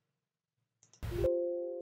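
A computer alert chime sounds.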